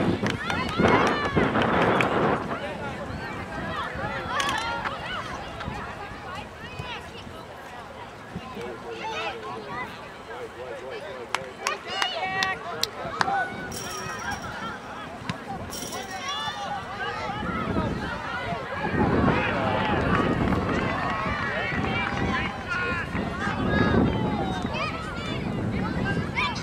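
Spectators on the sidelines shout and cheer outdoors.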